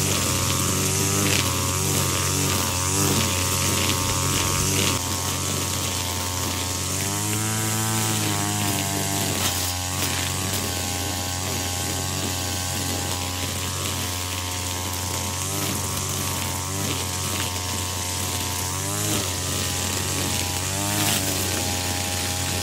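A string trimmer engine whines steadily close by, its pitch rising and falling as it revs.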